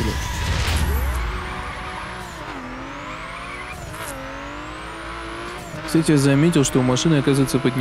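Race car engines roar and rev at high speed.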